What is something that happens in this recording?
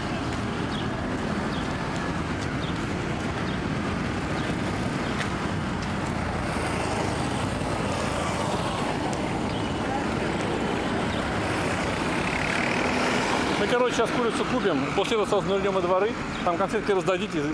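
Traffic rumbles steadily along a busy road outdoors.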